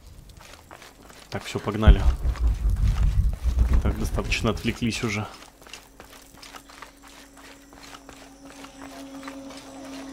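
Footsteps scuff over rocky ground.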